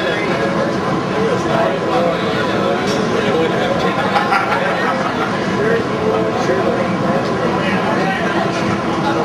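A heavy metal band plays loud distorted guitars through amplifiers.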